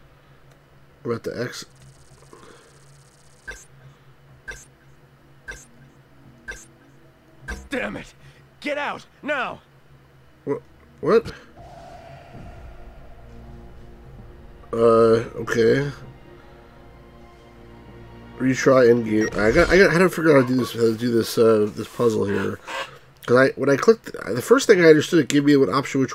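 A middle-aged man talks calmly and close to a microphone.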